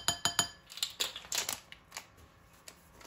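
A paper packet rustles and crinkles.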